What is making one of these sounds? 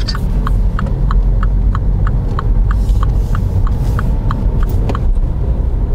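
A turn signal ticks rapidly and evenly.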